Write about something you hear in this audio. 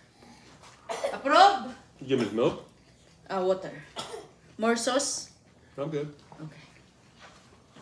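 A young girl talks animatedly close by.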